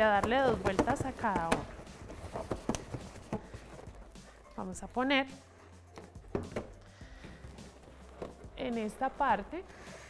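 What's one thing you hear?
Rubber balloons squeak as they are handled.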